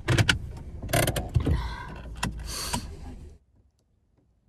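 Hands thump and rub against a steering wheel.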